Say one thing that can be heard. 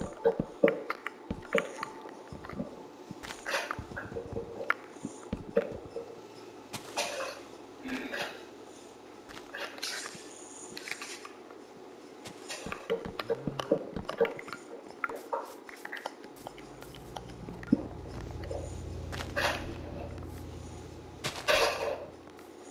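Dirt crunches in short bursts as blocks are dug out.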